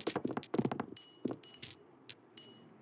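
Dice clatter and tumble with bright chiming tones.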